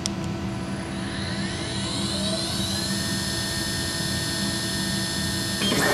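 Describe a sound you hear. A machine motor spins up with a rising whine, then holds a steady high hum.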